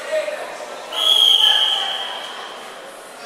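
A referee blows a whistle sharply.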